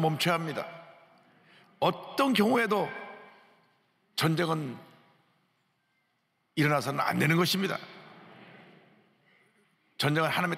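A middle-aged man speaks slowly and earnestly into a microphone, in short phrases with pauses, in a reverberant hall.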